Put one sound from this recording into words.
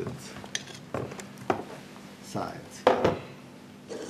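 A thin glass plate clicks against a hard surface.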